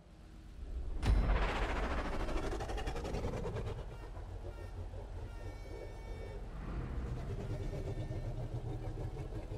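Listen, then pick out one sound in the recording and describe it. A sports car engine roars and revs loudly.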